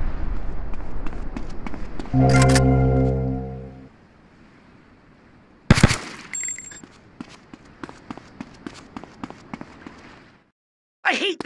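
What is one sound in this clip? Footsteps run across concrete.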